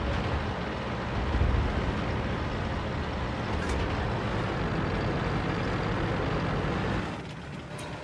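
A tank engine rumbles steadily as tracks roll over the ground.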